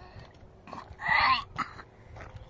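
A young child cries out briefly, close by.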